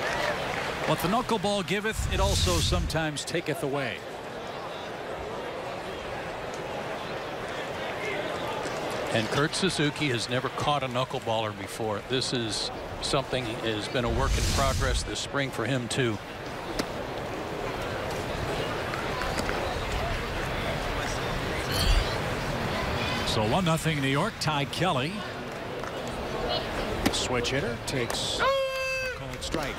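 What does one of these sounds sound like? A crowd murmurs outdoors in the stands.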